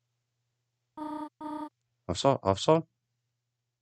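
Short electronic blips chirp rapidly, one after another.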